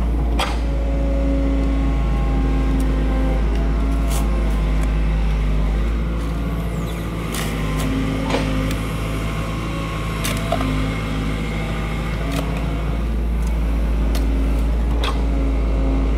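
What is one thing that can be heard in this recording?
A hoe chops into dry soil with dull thuds.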